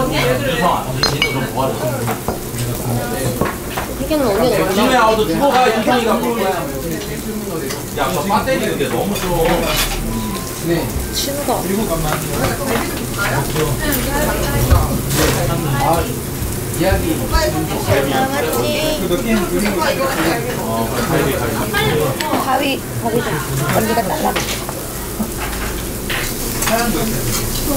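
Young women and men chat and laugh together nearby.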